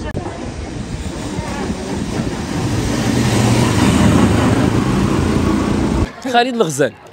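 A crowd of women and men murmur and chatter outdoors.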